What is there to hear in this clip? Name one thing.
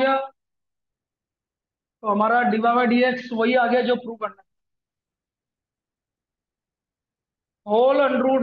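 A man speaks calmly, explaining, close to a microphone.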